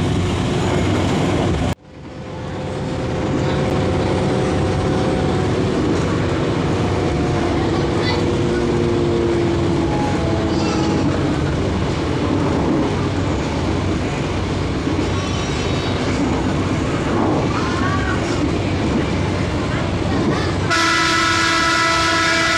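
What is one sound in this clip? A diesel engine drones under the floor of a diesel railcar under way.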